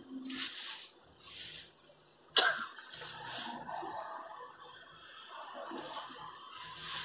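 A teenage boy laughs softly, close by.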